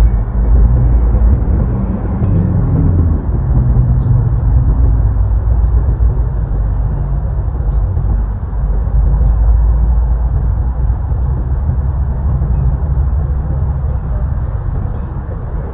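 Wind blows steadily outdoors, rumbling against the microphone.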